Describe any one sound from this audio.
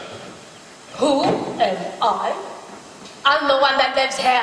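An elderly woman speaks with animation through a stage microphone.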